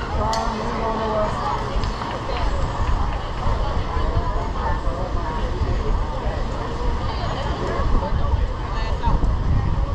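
Children and adults chatter and call out at a distance outdoors.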